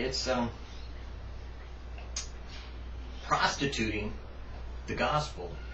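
A middle-aged man speaks calmly close by, in short phrases with pauses.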